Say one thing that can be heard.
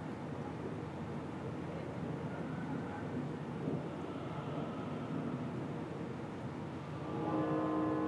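An elderly man speaks quietly.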